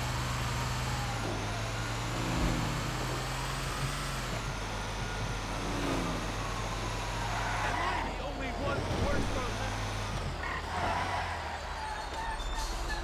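A siren wails, rising and falling.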